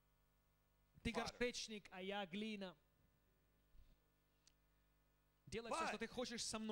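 A middle-aged man speaks through a microphone with animation.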